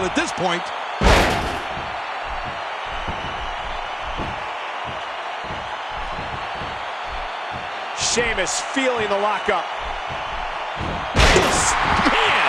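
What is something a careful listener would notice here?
A heavy body slams onto a ring mat with a loud thud.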